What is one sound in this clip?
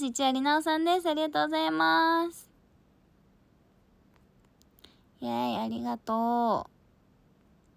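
A young woman speaks close to a microphone in a high, animated voice.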